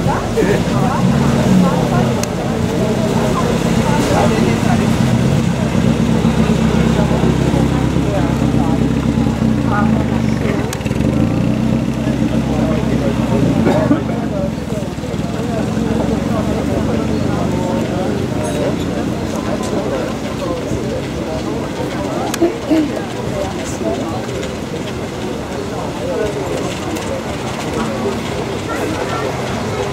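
A crowd of men and women chats outdoors nearby.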